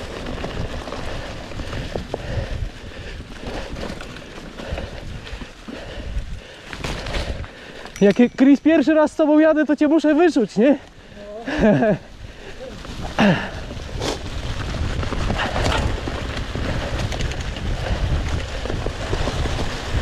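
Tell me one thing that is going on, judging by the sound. Wind rumbles and buffets close by as a bicycle rides fast.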